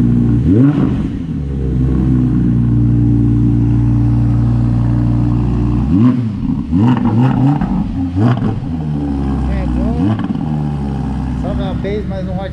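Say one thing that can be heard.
A sports car engine idles with a deep, loud rumble.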